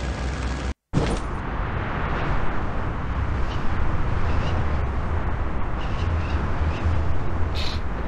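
Wind rushes past during a fall through the air.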